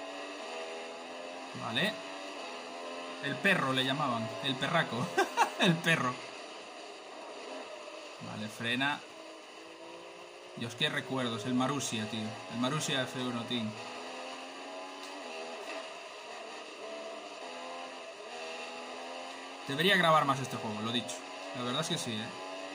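A racing car engine whines, rising and falling in pitch as it speeds up and slows down.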